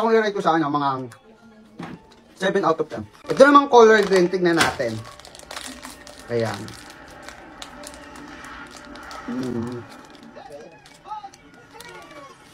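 A young man chews food with his mouth near the microphone.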